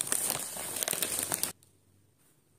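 A paper bag rustles loudly.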